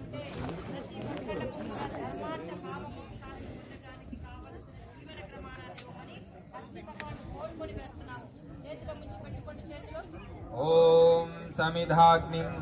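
A crowd of men and women chatters and murmurs nearby.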